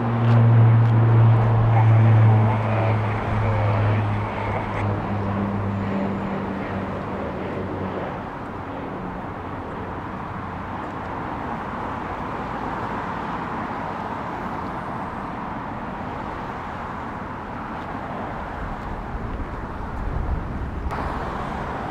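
A jet engine roars in the distance as an aircraft speeds along a runway.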